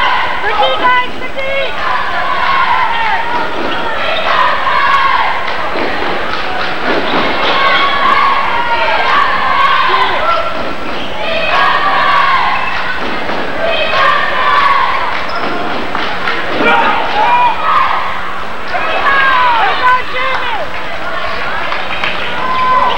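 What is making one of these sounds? A crowd murmurs and shouts in an echoing gym.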